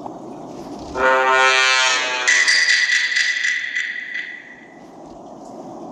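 A dramatic musical sting swells and fades as a game round begins.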